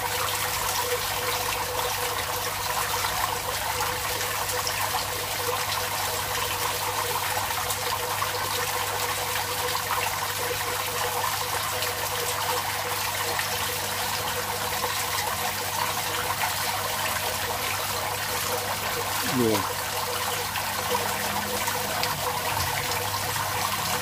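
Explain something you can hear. Water bubbles and gurgles steadily, close by.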